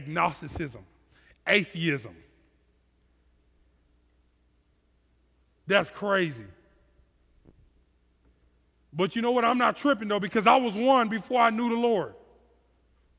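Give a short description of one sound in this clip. A man speaks with animation into a headset microphone, with long pauses.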